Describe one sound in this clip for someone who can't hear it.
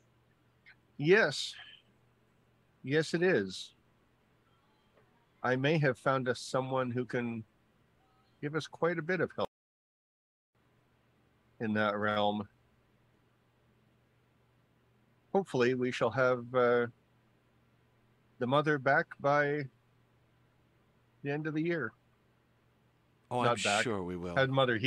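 A man speaks close to a microphone, in short bursts, over an online call.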